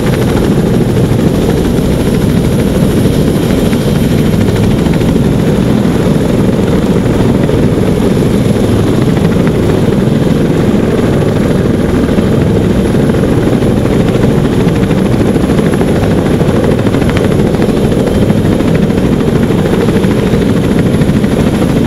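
A helicopter's rotors thump loudly and steadily close by.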